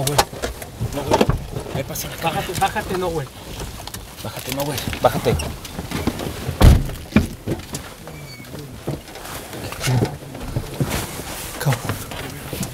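Clothing rustles and thumps against a car seat.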